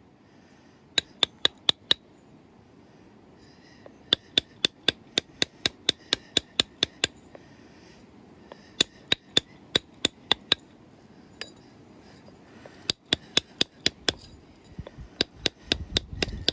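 An antler tool taps sharply against a stone blade in quick bursts.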